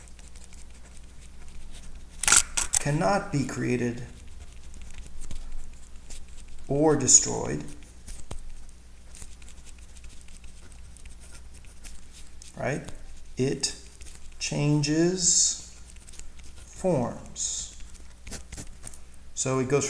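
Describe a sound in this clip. A pen scratches on paper as it writes.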